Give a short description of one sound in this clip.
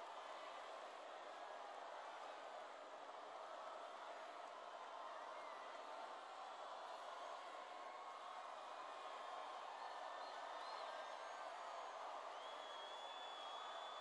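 A crowd claps steadily.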